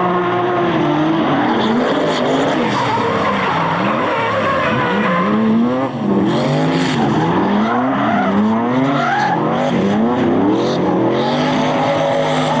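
Racing car engines rev hard, rising and falling in pitch.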